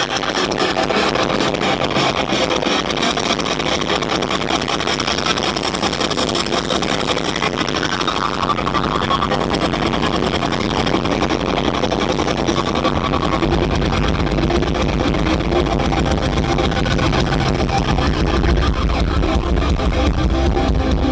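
A rock band plays loudly through big loudspeakers outdoors.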